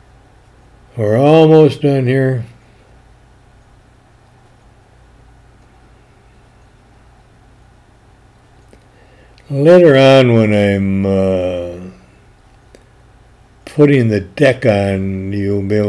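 An older man speaks calmly close by, in short bursts.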